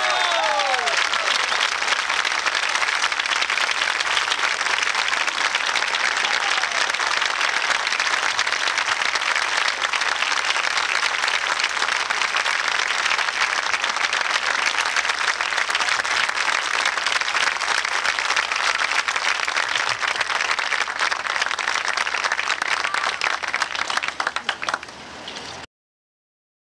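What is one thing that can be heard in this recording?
A large crowd applauds loudly outdoors.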